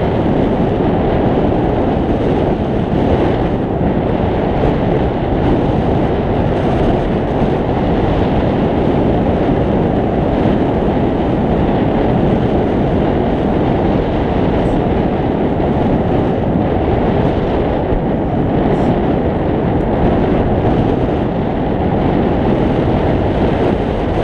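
Strong wind roars steadily past the microphone in flight.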